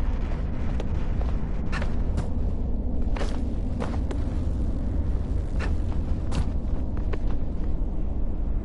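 Light footsteps tap on stone.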